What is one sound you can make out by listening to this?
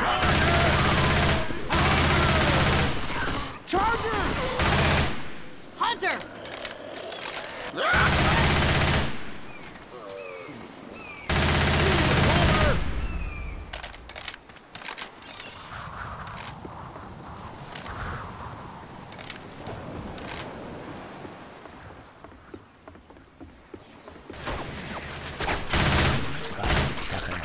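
A submachine gun fires loud rapid bursts.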